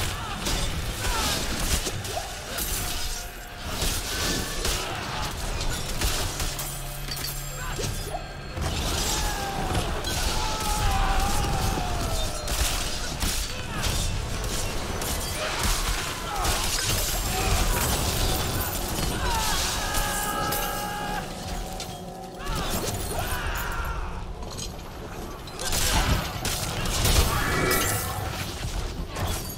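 Magic blasts crackle and boom in a fast fight.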